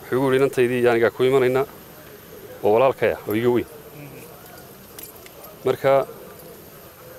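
A man speaks forcefully into microphones outdoors, with pauses between phrases.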